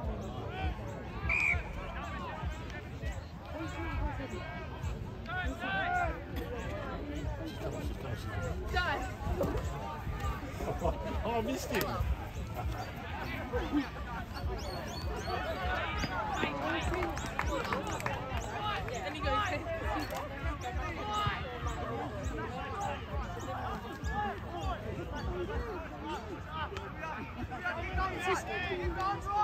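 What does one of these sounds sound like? A crowd of men and women calls out and cheers outdoors.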